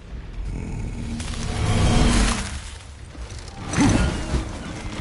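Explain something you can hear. A thrown axe whooshes through the air.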